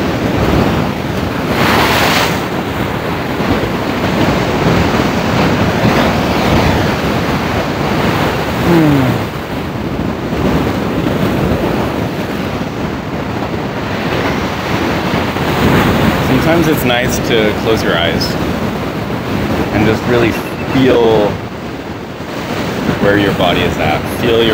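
Wind blows across the shore.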